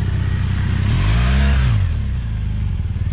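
A motorcycle passes close by.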